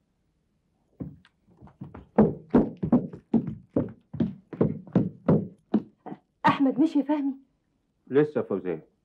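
A woman speaks excitedly close by.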